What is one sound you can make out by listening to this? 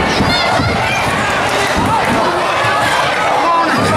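Bodies thud onto a wrestling mat.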